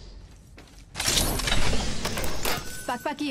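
A metal crate lid swings open with a loud clank.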